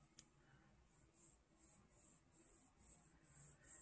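Fingers rub softly across skin.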